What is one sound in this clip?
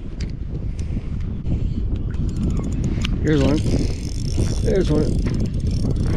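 A spinning reel whirs as its handle is cranked.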